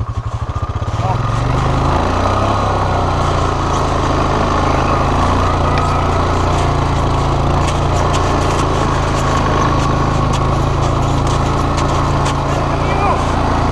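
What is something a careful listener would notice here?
A quad bike engine revs up and roars steadily.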